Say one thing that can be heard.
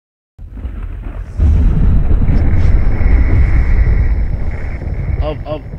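A burst of sparks crackles with a deep, rumbling roar.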